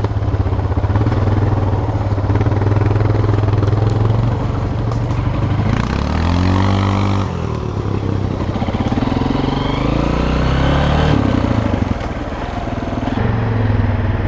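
A motorbike engine revs and idles close by, rising and falling in pitch.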